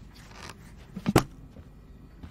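A lid pops off a tin can.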